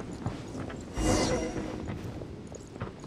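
A bright chime rings out as a mechanism activates.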